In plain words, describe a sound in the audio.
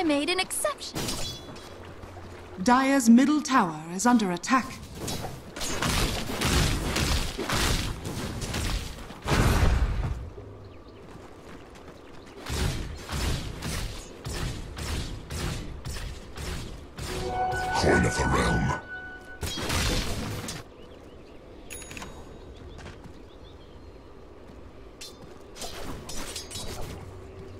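Weapons clash and magic bursts in a noisy fight.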